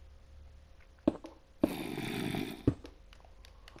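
A pickaxe knocks and crunches as stone is dug out in short bursts.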